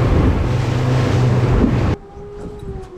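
Wind rushes loudly past.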